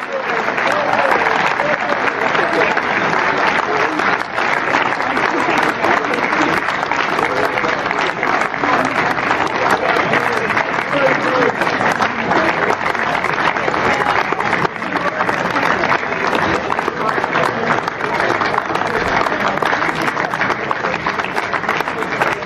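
A crowd claps and applauds steadily outdoors.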